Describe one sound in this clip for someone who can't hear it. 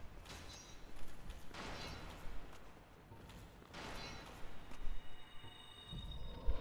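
Armoured footsteps clank on stone steps.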